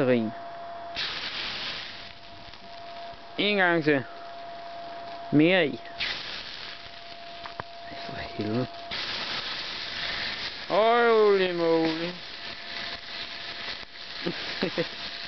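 Flames burst up with a loud roaring whoosh.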